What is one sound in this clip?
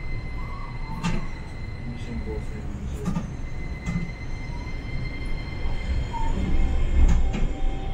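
The bus body rattles and clunks over the road.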